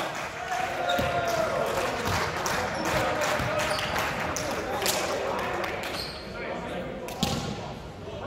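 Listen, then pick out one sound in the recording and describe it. A volleyball thuds off hands and bounces on a wooden floor.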